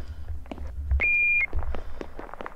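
An elevator chime dings once.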